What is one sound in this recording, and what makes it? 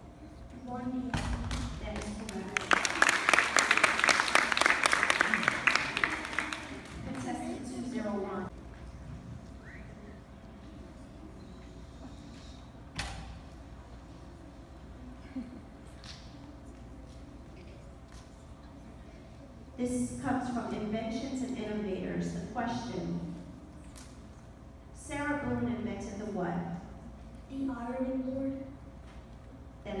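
A child speaks into a microphone, heard through loudspeakers in a large echoing hall.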